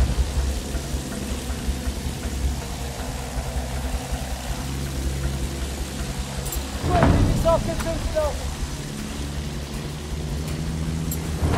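A biplane engine drones steadily.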